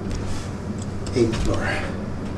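An elevator button clicks.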